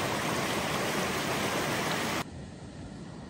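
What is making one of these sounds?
A mountain stream rushes loudly over rocks close by.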